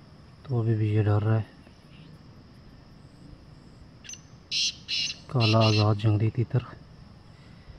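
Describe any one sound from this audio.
A pheasant gives loud, harsh crowing calls close by.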